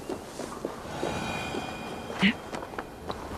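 Footsteps thud on a tiled roof.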